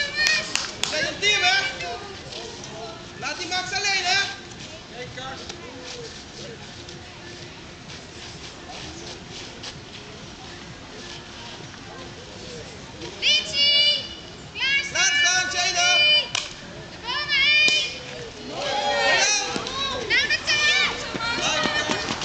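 Children shout and cheer excitedly from a distance, outdoors.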